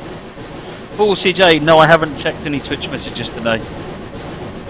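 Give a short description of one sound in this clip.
A steam whistle blows loudly.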